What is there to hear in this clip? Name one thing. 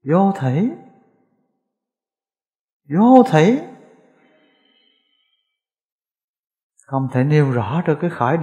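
A middle-aged man speaks calmly into a microphone, with long pauses.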